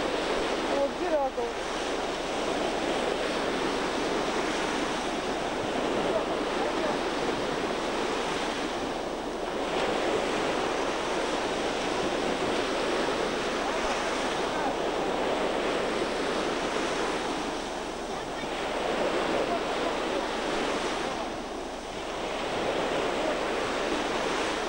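Wind blows hard across the microphone.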